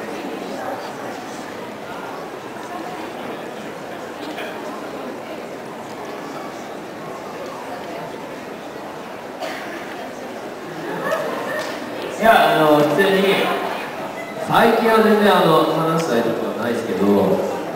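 An audience murmurs quietly.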